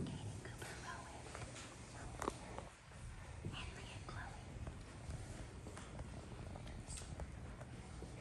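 Young children chatter quietly nearby in a room.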